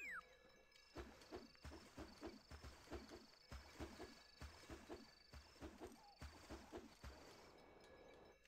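Water splashes as footsteps wade through a stream.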